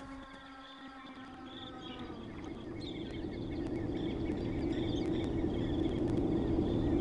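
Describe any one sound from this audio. A hovering craft's engine hums, growing louder.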